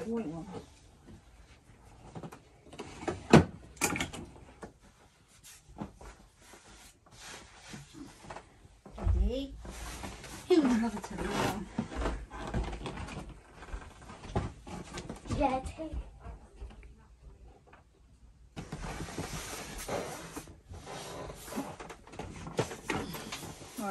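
Soft bedding rustles and thumps in a crib.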